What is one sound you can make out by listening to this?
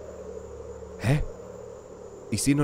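A man speaks briefly and casually into a microphone.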